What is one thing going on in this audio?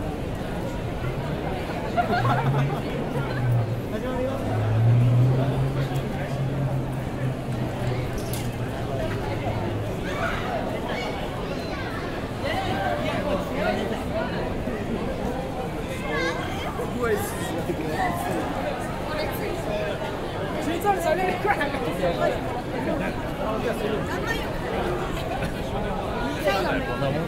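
Footsteps of many people shuffle on pavement.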